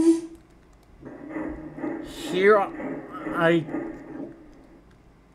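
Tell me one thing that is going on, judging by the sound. A steam locomotive whistle blows.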